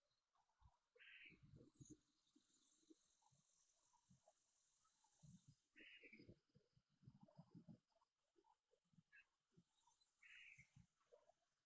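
Birds chirp in short bursts.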